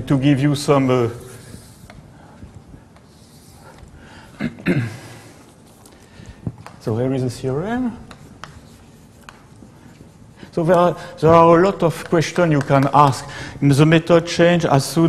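An elderly man speaks calmly through a microphone, pausing between phrases.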